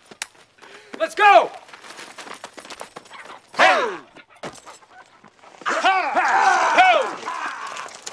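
Men shout and whoop cheerfully.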